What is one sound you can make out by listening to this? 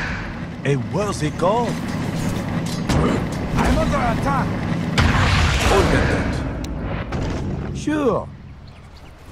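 Magic spells whoosh and blast in a fantasy battle.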